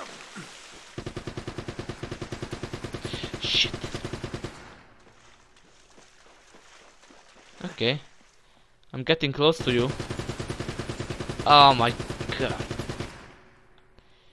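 Footsteps splash through shallow water.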